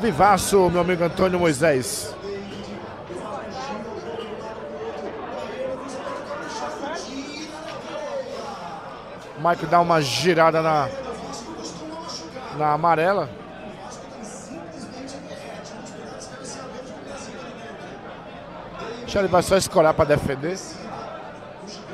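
A crowd murmurs in the background.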